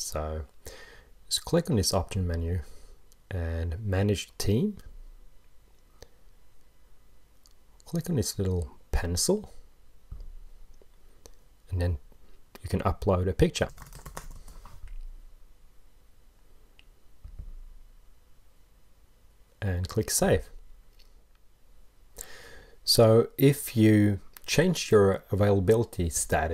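A man talks calmly and close to a microphone, with pauses.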